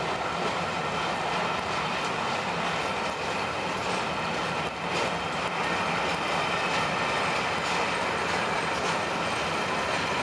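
A steam locomotive chuffs in the distance.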